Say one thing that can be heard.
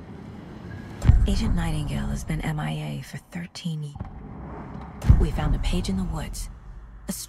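A woman speaks quietly and gravely.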